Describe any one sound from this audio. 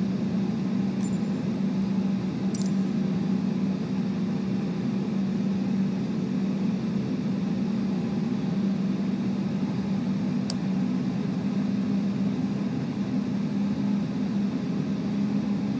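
An airliner's engines hum steadily at idle.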